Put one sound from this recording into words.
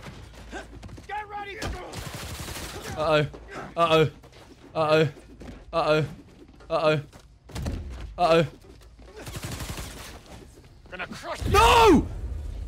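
A young man talks excitedly into a microphone close by.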